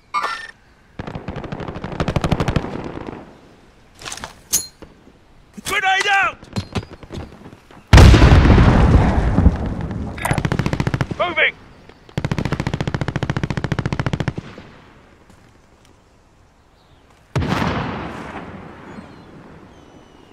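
Gunfire rattles in rapid bursts, echoing outdoors.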